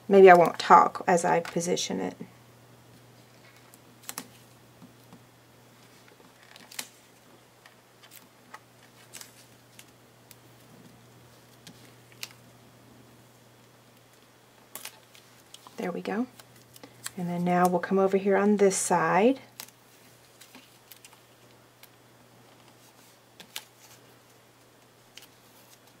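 Washi tape is pressed and smoothed onto card.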